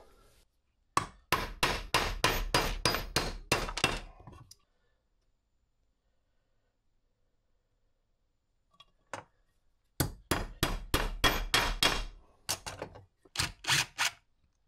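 An impact driver rattles loudly in short, rapid bursts.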